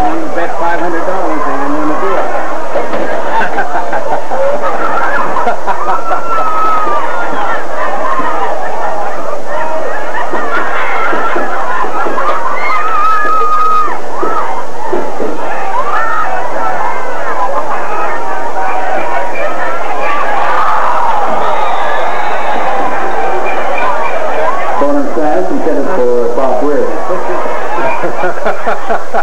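A crowd of spectators chatters and shouts loudly close by, outdoors.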